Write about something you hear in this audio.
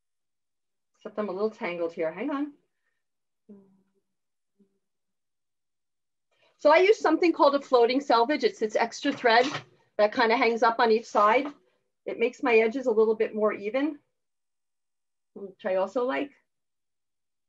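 A woman speaks calmly, close by, in short bursts.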